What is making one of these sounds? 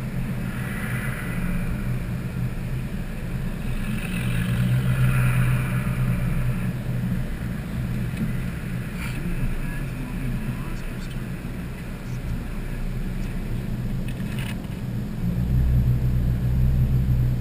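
Tyres roll on pavement.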